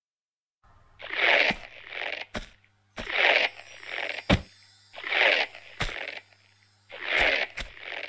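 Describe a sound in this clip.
Footsteps thud on hollow wooden boards in a large echoing space.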